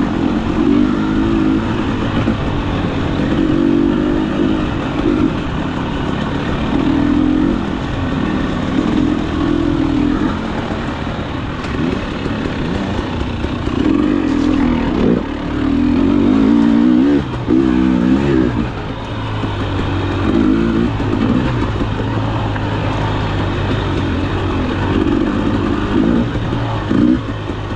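Tyres crunch over dirt, twigs and roots.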